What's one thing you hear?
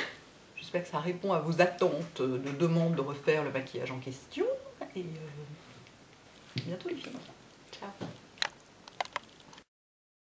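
A woman talks up close, in an animated way.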